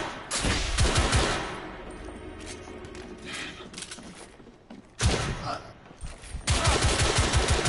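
Rapid gunshots fire in loud bursts.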